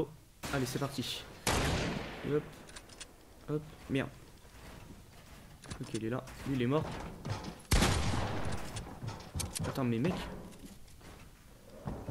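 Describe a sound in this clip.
Game building pieces clack and snap in quick bursts.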